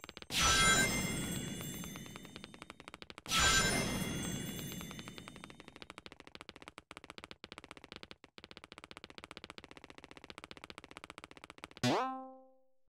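Quick footsteps patter rapidly on pavement.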